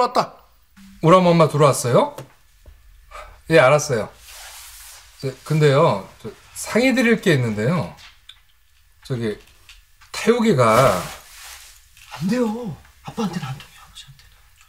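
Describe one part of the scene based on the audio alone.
A young man speaks calmly into a phone, close by.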